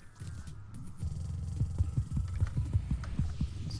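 Soft digging thuds repeat quickly.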